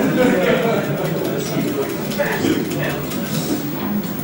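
A video game plays electronic tones and buzzes through a television speaker.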